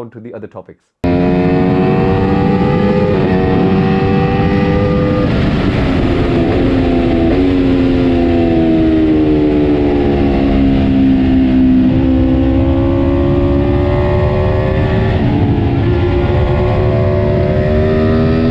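Wind rushes past loudly.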